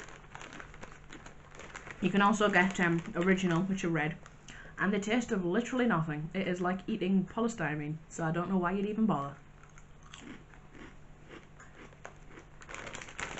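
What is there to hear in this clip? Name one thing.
A young woman crunches crisps while chewing.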